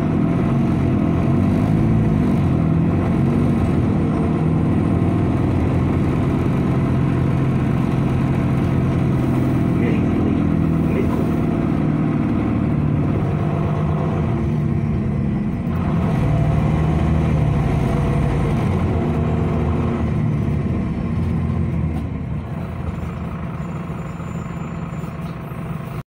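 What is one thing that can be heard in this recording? A bus engine hums and rumbles steadily while driving.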